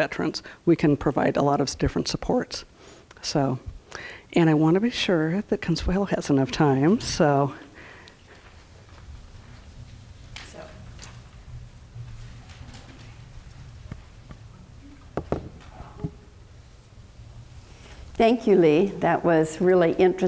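A middle-aged woman speaks calmly into a microphone, heard over a loudspeaker.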